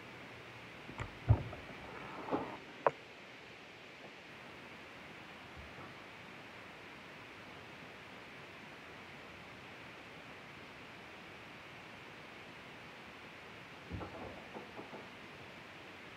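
A young girl speaks softly close by.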